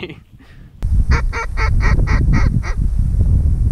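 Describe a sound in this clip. Geese honk in the distance.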